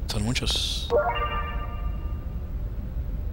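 A short bright chime rings.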